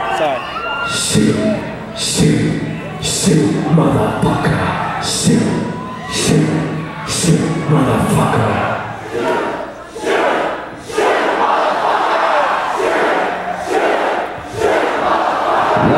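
Drums pound in a steady beat.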